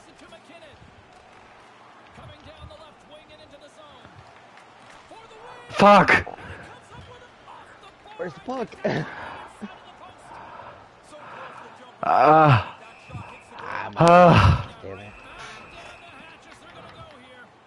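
A crowd murmurs.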